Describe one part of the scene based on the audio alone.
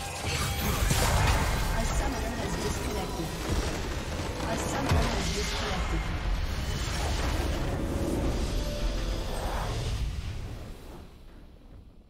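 Magical blasts and crashing effects burst loudly in a game.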